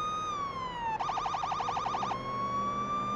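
A police siren briefly switches to a rapid yelp.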